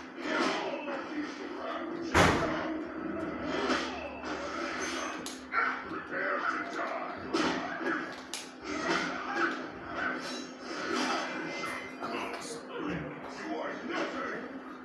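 Punches and kicks from a fighting game land with sharp thuds through a television speaker.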